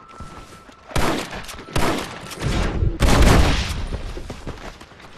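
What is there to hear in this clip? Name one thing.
Gunshots crack loudly, echoing between wooden walls.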